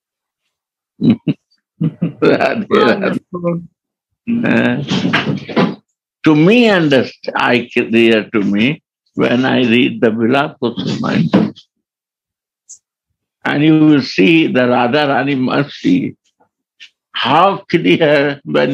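An elderly man speaks calmly and steadily, heard through a microphone over an online call.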